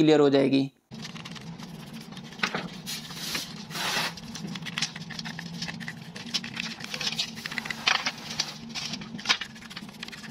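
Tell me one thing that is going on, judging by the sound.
A stiff brush scrubs against metal with quick scratching strokes.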